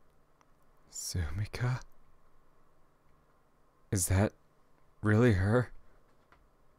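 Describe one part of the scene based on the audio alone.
A man speaks in short, animated bursts close to a microphone.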